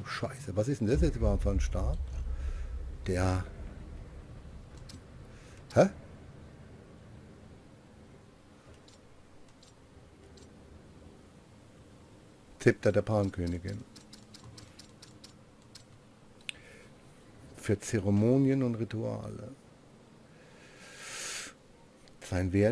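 A man talks casually into a microphone, with pauses.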